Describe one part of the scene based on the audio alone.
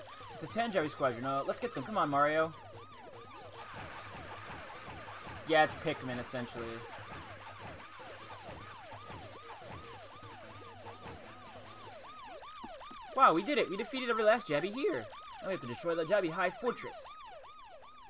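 Cartoon characters chatter in short, bouncy bursts of voice sounds.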